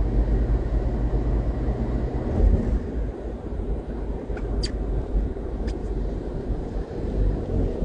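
A car rumbles steadily while driving.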